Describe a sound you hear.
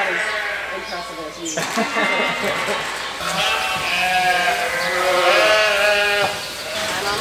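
A flock of sheep bleats loudly.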